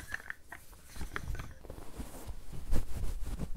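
Soft fabric rustles and crinkles close to a microphone.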